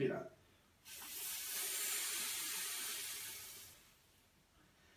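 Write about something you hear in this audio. A man breathes out hard through his mouth.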